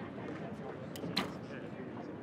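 A bowstring snaps sharply as an arrow is shot.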